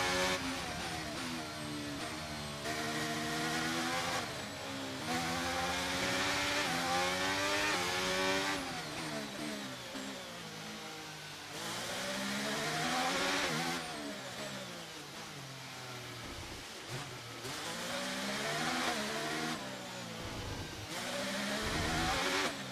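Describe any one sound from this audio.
A racing car engine screams and shifts pitch up and down through the gears.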